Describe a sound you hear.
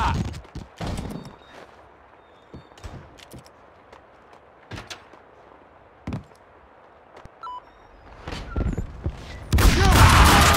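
Footsteps thud quickly on hard floors and wooden stairs.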